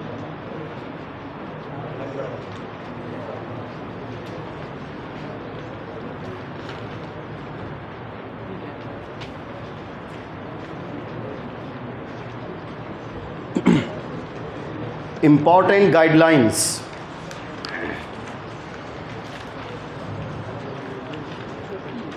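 Many young men murmur and talk quietly in a room.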